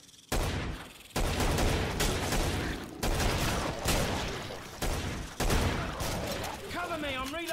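Pistol shots fire in quick bursts.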